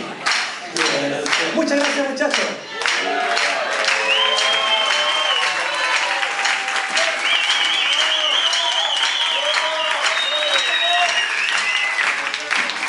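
A band plays loud live music.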